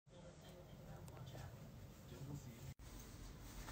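A man snores softly in his sleep.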